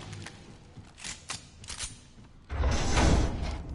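A gun fires several sharp shots in quick succession.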